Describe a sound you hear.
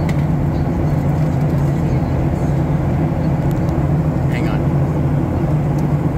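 A jet engine roars steadily and loudly, heard from inside an airliner cabin.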